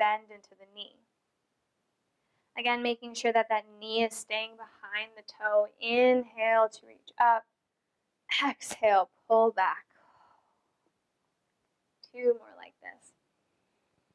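A woman speaks calmly and clearly, giving instructions close to a microphone.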